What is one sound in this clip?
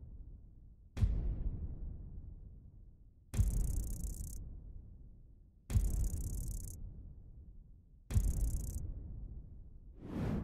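Deep booming thumps with a hissing whoosh sound one after another, each slowly fading.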